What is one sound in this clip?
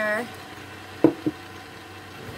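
A cup is set down on a counter with a knock.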